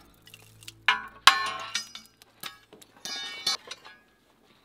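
A sledgehammer strikes steel bars with sharp metallic clangs.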